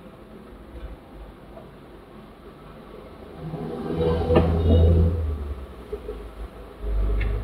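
A car engine idles with a low hum in slow traffic.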